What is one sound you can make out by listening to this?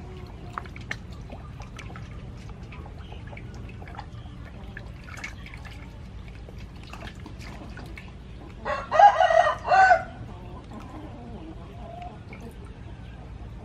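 Water splashes and sloshes in a metal bowl as a fish is washed by hand.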